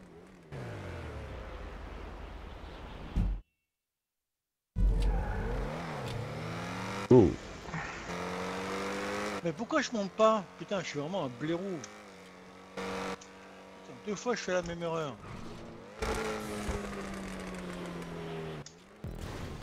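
A sports car engine roars and revs up and down at high speed.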